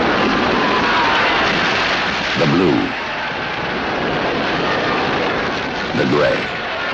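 Explosions boom and rumble across a battlefield.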